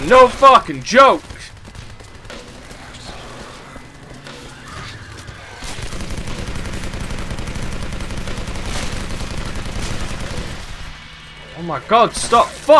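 A man exclaims loudly into a microphone.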